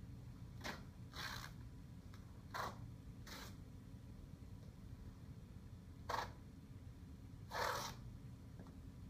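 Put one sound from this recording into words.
Masking tape rips as it is pulled off the roll.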